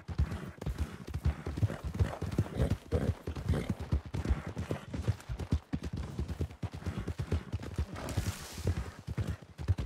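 A horse's hooves trot on a dirt trail.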